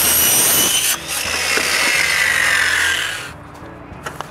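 A circular saw spins down with a falling whine.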